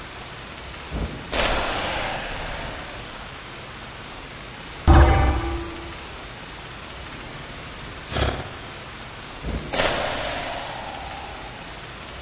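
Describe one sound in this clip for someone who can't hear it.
Short bursts of electronic game sound effects play.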